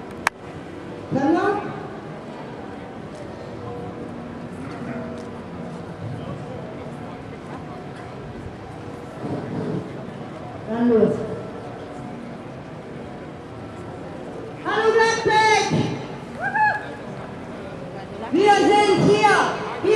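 A crowd of protesters chants loudly outdoors in bursts.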